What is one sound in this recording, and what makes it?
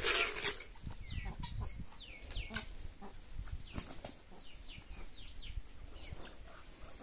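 Poultry give short, high chirping calls again and again.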